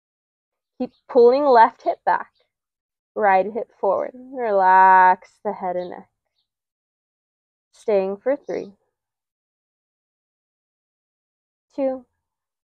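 A woman speaks calmly and clearly close by, giving slow instructions.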